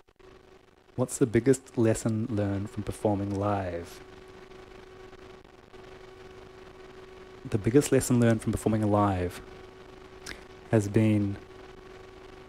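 A man speaks calmly and closely into a microphone, pausing between phrases.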